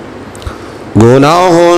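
A man begins to chant loudly through a microphone.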